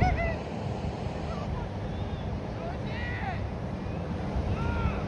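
Waves wash gently onto the shore.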